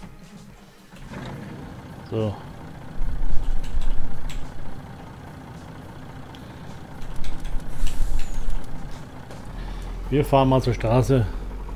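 A truck engine starts and rumbles steadily.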